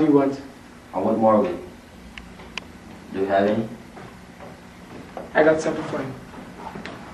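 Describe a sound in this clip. A second teenage boy answers calmly, close by.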